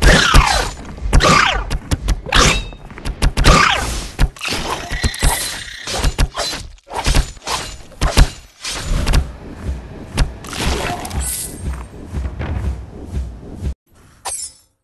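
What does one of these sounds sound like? Swords clash and spells burst in a rapid fight.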